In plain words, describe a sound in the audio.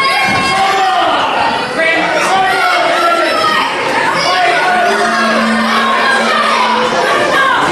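A crowd cheers and chants loudly in an echoing hall.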